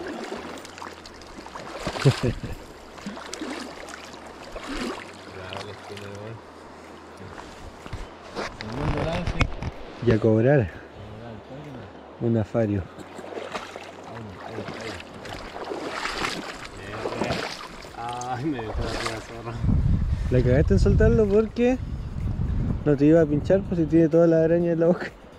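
A river flows and ripples steadily.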